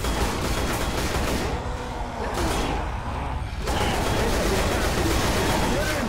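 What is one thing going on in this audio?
Glass shatters and crashes.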